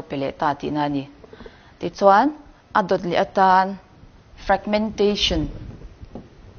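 A young woman speaks clearly in a room with some echo.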